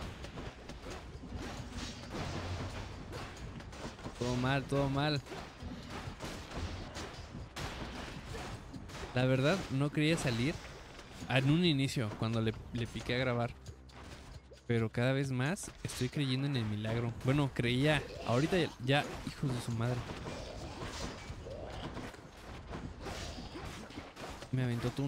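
Swords slash and magic blasts crackle in a fight.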